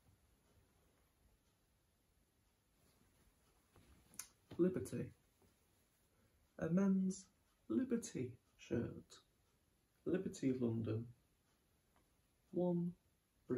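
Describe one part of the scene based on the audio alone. Fabric rustles as a shirt is handled.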